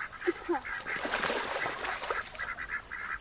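Ducks splash in the water.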